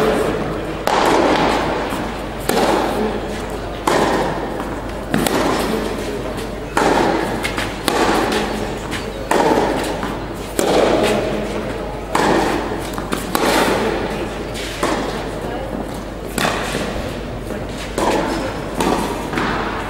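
Tennis rackets strike a ball back and forth in a rally, echoing in a large hall.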